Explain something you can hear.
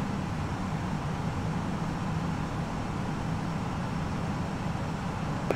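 Jet engines hum with a steady low roar.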